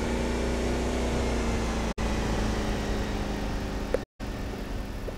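A car engine hums steadily and slows to idle.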